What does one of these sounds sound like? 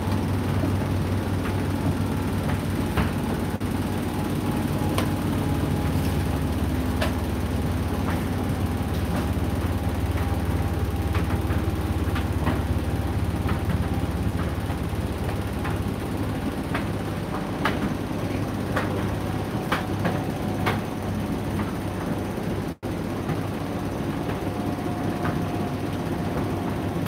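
Clothes thump and tap inside a tumbling dryer drum.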